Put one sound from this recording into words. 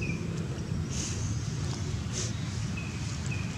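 A young monkey gives a soft, high squeak close by.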